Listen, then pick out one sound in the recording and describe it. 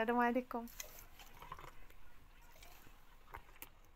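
Thick juice pours into a glass jar.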